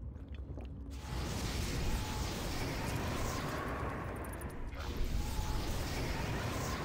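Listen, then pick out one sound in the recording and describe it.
A strong gust of wind whooshes.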